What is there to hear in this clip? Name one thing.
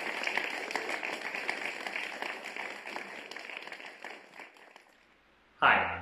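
An audience applauds in a large hall, and the clapping fades away.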